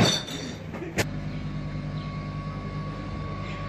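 An electric truck hums at low speed.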